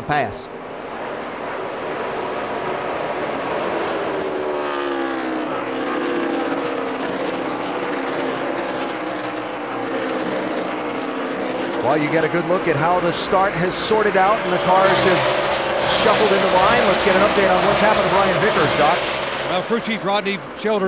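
Many race car engines roar loudly, rising and falling in pitch as the cars speed past.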